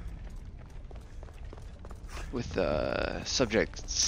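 Footsteps run quickly across a stone floor.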